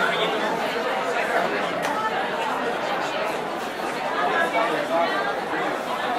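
A crowd of elderly men and women chatter in a busy room.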